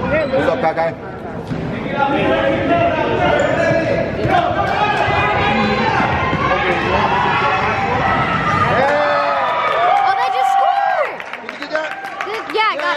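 Young children shout and chatter in a large echoing gym.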